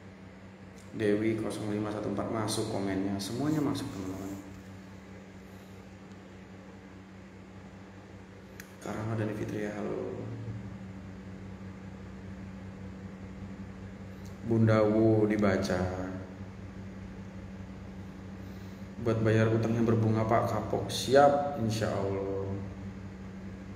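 A young man speaks calmly and close to the microphone, in short bursts with pauses.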